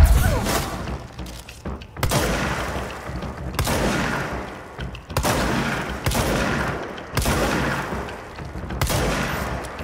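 A pistol fires repeated loud shots.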